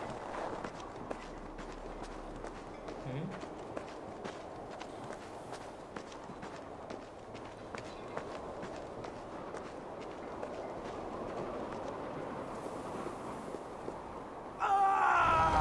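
Wind howls in a snowstorm.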